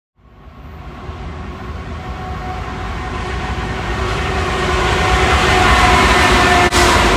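A diesel locomotive rumbles closer, growing steadily louder.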